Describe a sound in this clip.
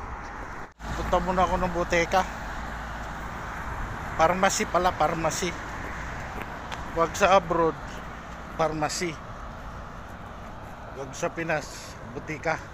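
A man talks close to a microphone in a low, calm voice.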